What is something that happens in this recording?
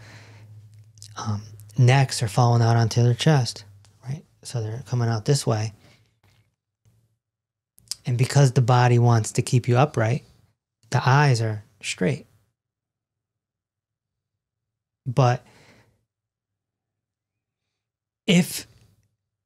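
A man speaks calmly and thoughtfully into a close microphone, with pauses.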